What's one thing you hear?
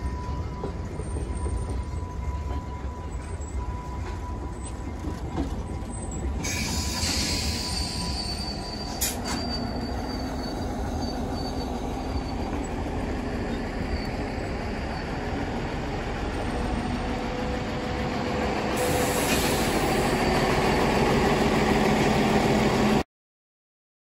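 A train rumbles slowly along the tracks close by.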